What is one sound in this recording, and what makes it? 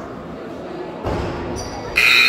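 A basketball clanks off the rim.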